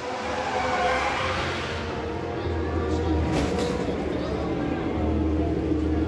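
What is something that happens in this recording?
Tyres squeal as a racing car spins and smokes.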